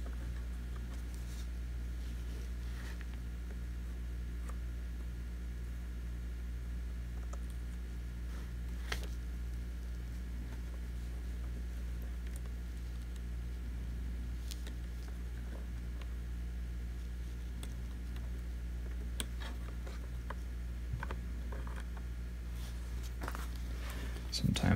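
Small plastic parts click and tap softly under working hands.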